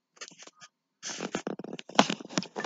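A small plastic toy train rattles and clatters as a hand moves it.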